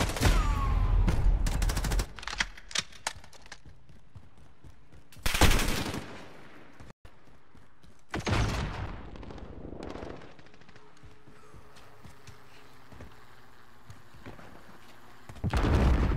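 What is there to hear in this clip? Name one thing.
Gunshots ring out in rapid bursts.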